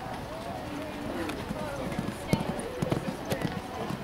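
A horse canters on sand.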